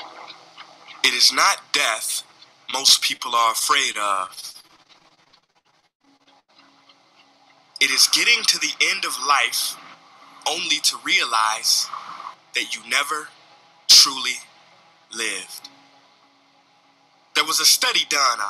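A man speaks forcefully over a loudspeaker, in bursts.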